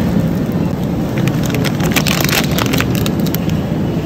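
Plastic wrapping rustles and crinkles as a hand grips it.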